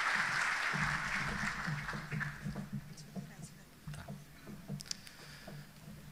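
A man speaks calmly through a microphone, echoing in a large hall.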